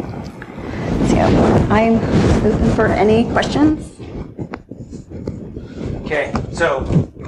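A woman speaks with animation through a microphone in a large room.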